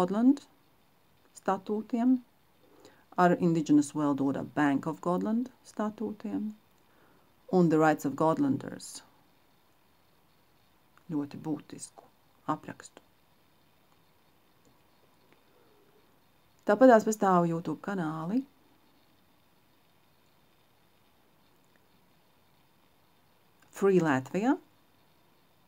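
A middle-aged woman speaks calmly and close to the microphone, pausing often.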